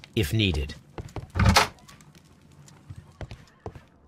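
A door latch clicks and the door swings open.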